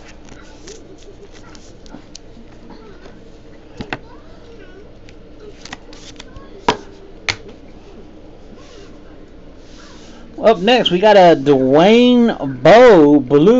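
Plastic card cases click and rustle as they are handled.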